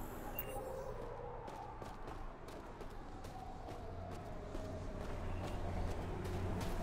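Footsteps crunch steadily on snow.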